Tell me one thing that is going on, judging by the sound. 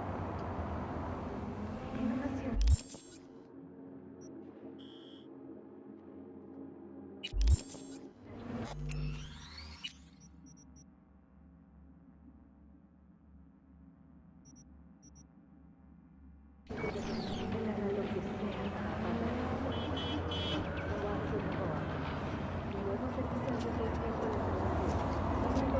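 A car drives past on a wet street.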